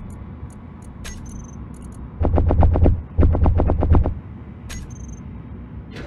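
Short electronic clicks tick now and then.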